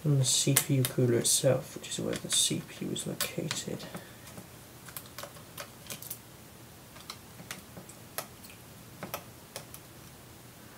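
Small metal parts click and tap against hard plastic.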